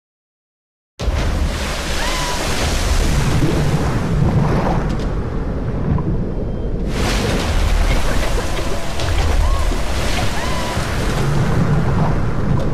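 Spray and rain lash down in a strong wind.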